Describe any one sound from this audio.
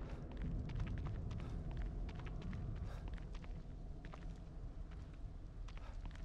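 Footsteps crunch steadily on a path outdoors.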